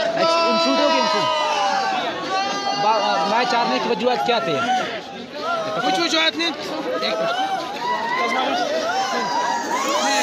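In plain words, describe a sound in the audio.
A young man talks excitedly close by.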